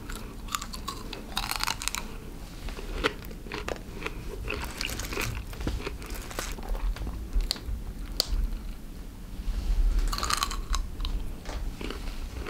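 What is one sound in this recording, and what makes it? A man chews crunchy fruit close by.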